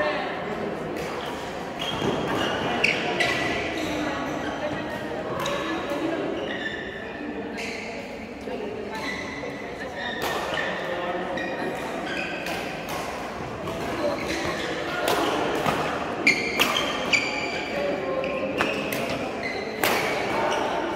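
Paddles strike a ball with sharp pops.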